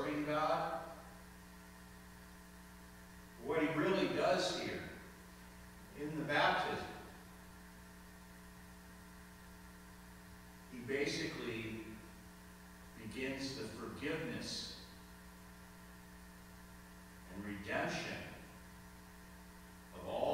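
A man speaks slowly and calmly into a microphone in a large echoing room.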